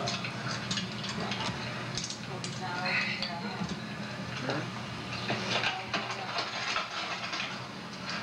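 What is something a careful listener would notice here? Children talk nearby.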